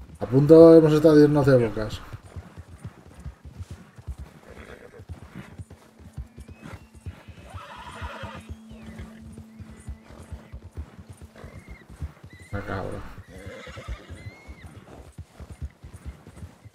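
Horse hooves thud rapidly through snow.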